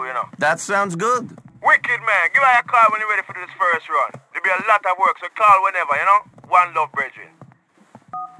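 A man talks on a phone.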